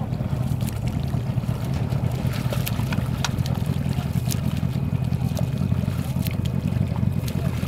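Water splashes softly as a swimmer takes strokes.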